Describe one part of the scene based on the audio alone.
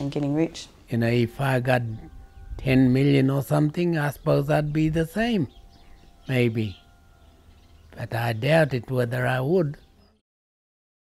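An elderly man speaks slowly and calmly close to a microphone.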